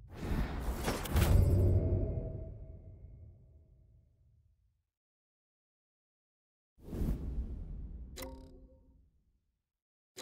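A game menu whooshes as a panel slides open.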